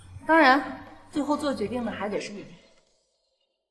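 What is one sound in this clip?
A young woman speaks calmly and closely.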